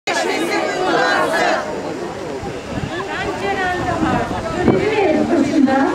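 A middle-aged woman speaks loudly into a microphone.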